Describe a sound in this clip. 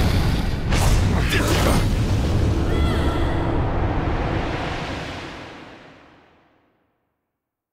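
A deep rumbling whoosh roars and slowly fades away.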